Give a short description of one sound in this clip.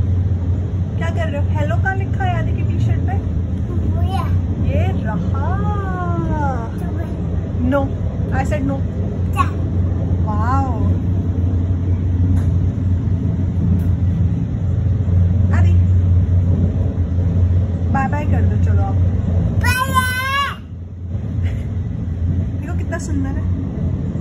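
A little girl talks and squeals in a high voice close by.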